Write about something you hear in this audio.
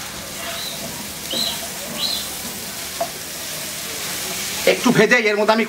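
A spatula scrapes and stirs against a pan.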